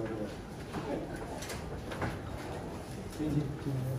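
A hospital bed's wheels rattle as it is pushed.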